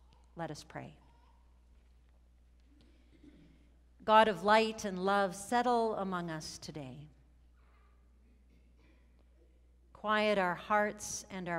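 A middle-aged woman reads aloud calmly through a microphone, with pauses.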